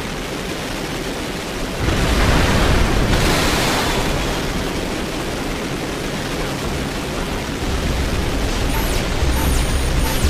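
A mech's boosters roar steadily as it flies.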